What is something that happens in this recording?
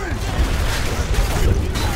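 Flames crackle from a burning car.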